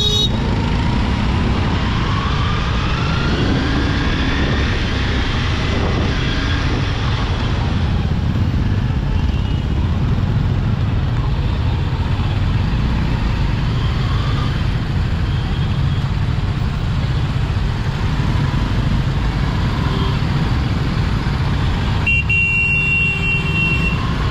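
Traffic horns honk around the rider.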